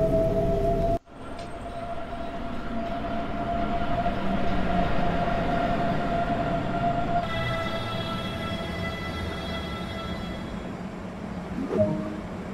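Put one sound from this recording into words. An electric train hums steadily while standing still.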